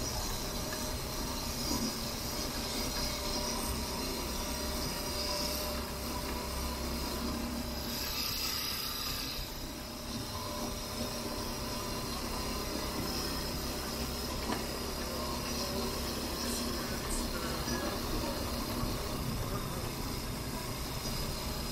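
A motorbike engine hums steadily nearby.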